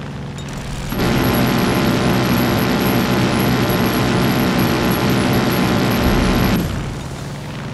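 A loud rushing roar swells as the plane skims low over the trees.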